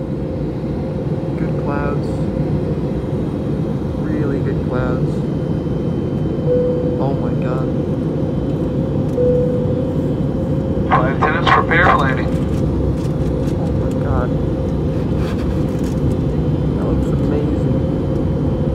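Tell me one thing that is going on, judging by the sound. A jet engine roars steadily in flight.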